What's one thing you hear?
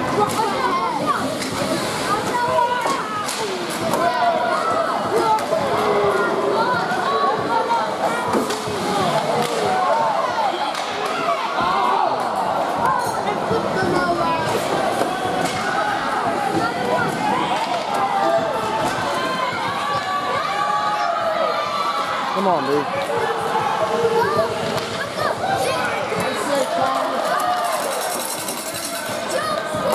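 Young players call out to each other on the ice.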